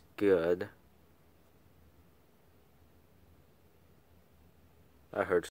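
A squeezed plush toy gives out a short electronic sound.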